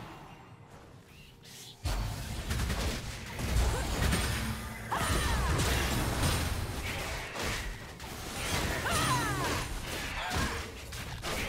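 Magic blasts and weapon hits clash in a game battle.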